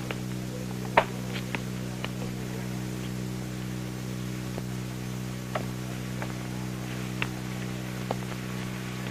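Chess pieces knock sharply onto a wooden board.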